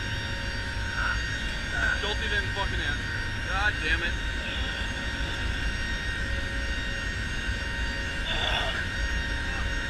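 A man speaks briefly over the engine noise.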